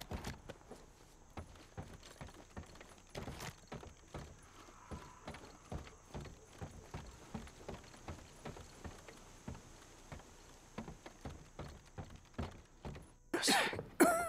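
Footsteps thud on wooden stairs and planks.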